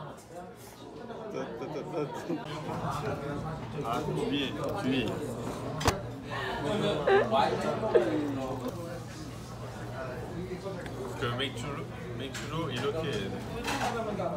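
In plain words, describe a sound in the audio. Many people chatter in the background of a busy room.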